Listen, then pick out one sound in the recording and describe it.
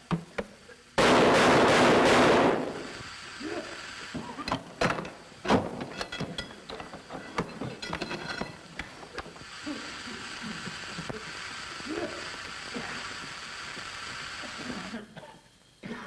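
Gas hisses loudly from a nozzle.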